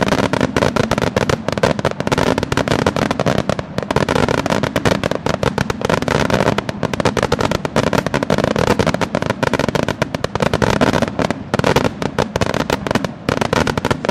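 Fireworks boom loudly overhead.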